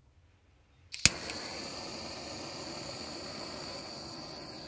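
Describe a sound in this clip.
A gas torch roars with a steady hiss.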